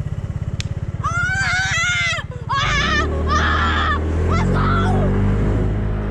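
A young boy shouts and squeals excitedly close by.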